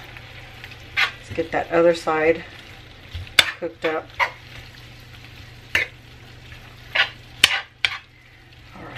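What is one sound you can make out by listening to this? A metal spatula scrapes and clicks against a pan.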